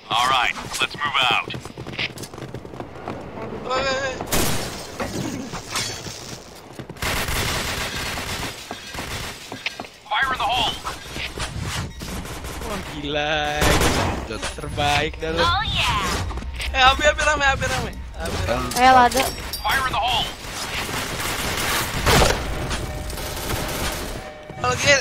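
A young woman talks with animation into a headset microphone.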